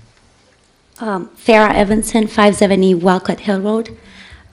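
A young woman speaks into a microphone, heard through a loudspeaker.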